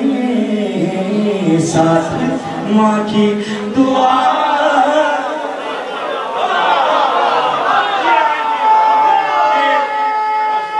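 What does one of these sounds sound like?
A young man recites with passion into a microphone, heard through loudspeakers in a large echoing space.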